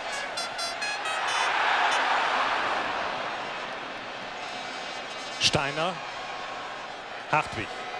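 A large stadium crowd roars, swelling loudly and then settling into a steady murmur.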